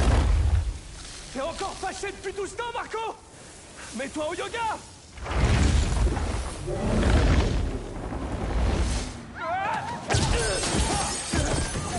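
A young man speaks with a strained voice.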